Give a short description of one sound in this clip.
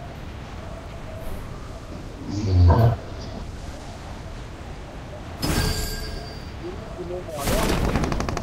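Wind rushes past steadily during a fall.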